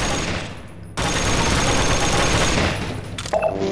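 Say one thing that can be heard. A wooden crate smashes apart.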